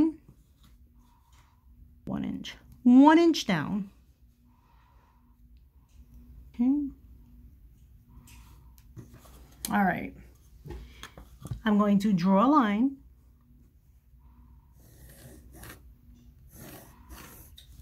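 A chalk pencil scratches softly across fabric.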